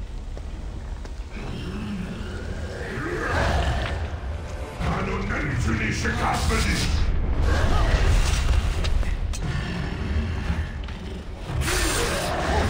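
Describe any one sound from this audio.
Flames roar and crackle with a deep rumble.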